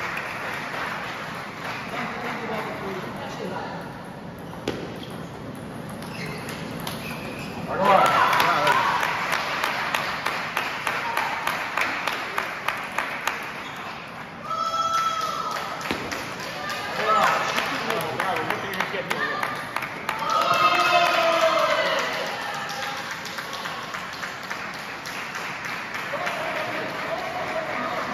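A table tennis ball clicks back and forth off paddles and the table in a large echoing hall.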